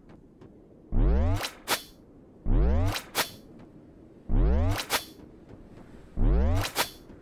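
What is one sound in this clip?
Loud sweeping zaps burst again and again.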